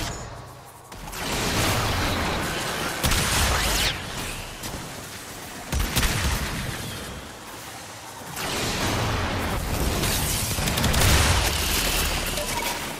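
Deep rumbling explosions boom.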